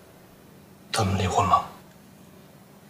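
A young man speaks in a low, strained voice nearby.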